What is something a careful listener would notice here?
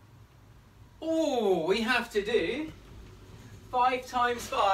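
A man speaks animatedly close by.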